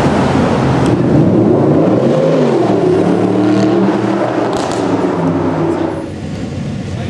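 A sports car engine revs loudly.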